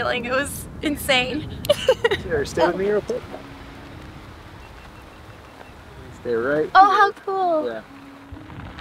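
A young woman talks and laughs excitedly close by.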